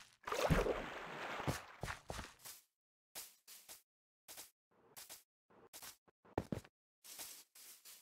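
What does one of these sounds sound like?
Footsteps crunch quickly on grass.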